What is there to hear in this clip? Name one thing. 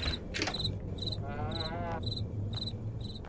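A door creaks slowly open.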